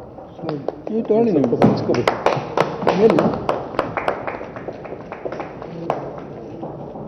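A crowd of men claps.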